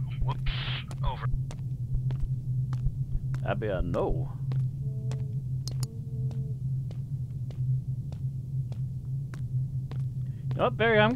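Footsteps tap steadily on stone paving.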